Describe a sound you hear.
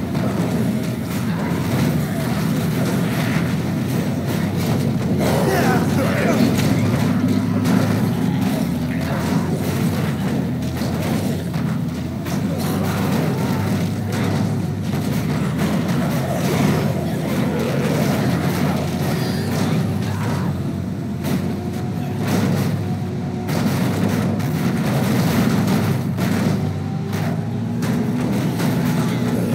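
Bodies thud against the car.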